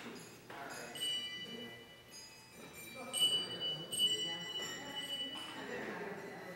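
Handbells ring out with long, clear tones in an echoing hall.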